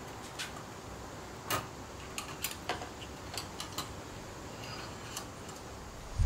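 A wire grill basket clinks shut.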